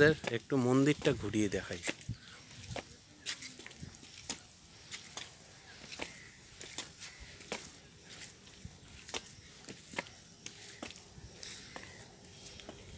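Footsteps climb stone steps outdoors at an even pace.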